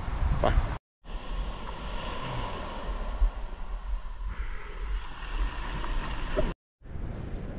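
Waves wash onto a pebble shore.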